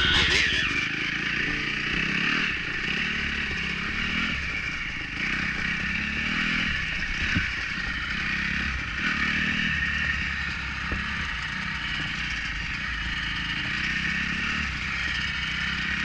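A second dirt bike engine rumbles nearby.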